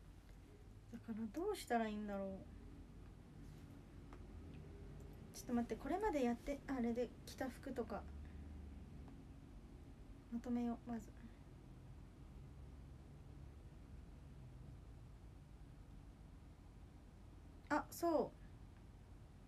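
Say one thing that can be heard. A young woman speaks softly in short bursts, close by.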